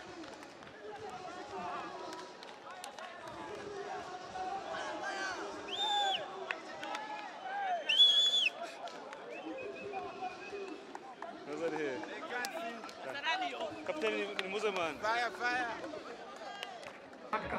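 A crowd of young men chatters and cheers outdoors.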